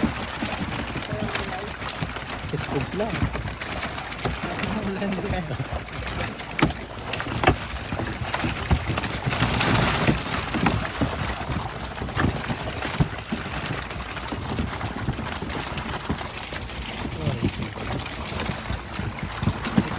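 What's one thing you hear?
Men talk with one another nearby.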